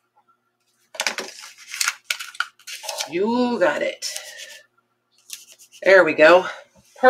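Paper and cloth rustle under handling hands.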